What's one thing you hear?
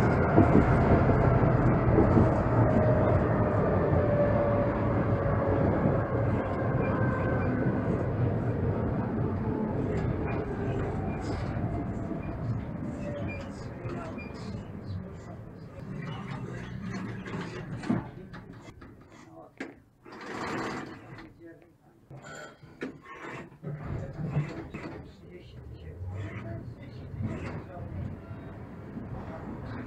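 A tram rumbles and rattles along its tracks.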